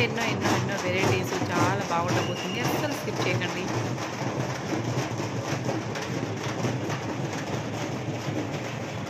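Large drums beat loudly in a fast, steady rhythm close by.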